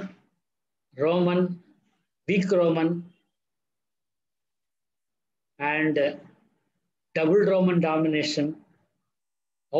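An elderly man speaks calmly in short phrases over an online call.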